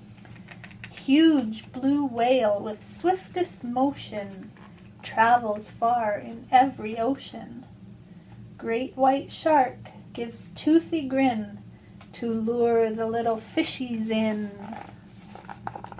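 A woman reads aloud with expression close by.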